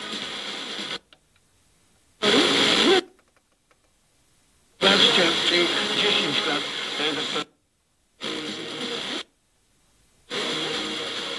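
An FM tuner mutes to silence while being retuned.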